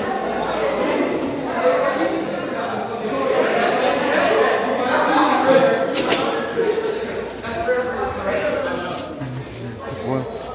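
Young people talk and chatter nearby.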